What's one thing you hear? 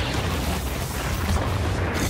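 Debris explodes and scatters with a loud crash.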